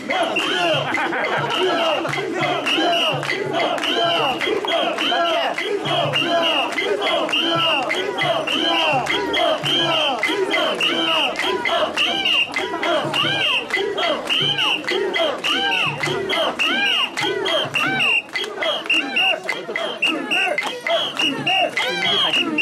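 A crowd of men and women chant loudly in rhythm.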